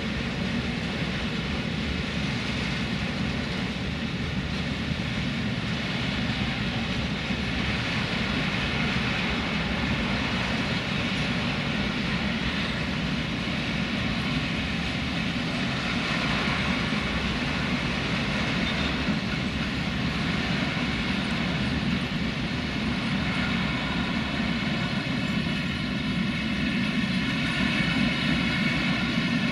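A long freight train rumbles and clatters steadily past on the rails.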